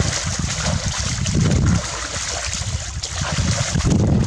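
Hands scoop and splash in shallow water.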